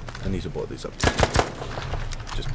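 A rifle fires a few quick, loud shots.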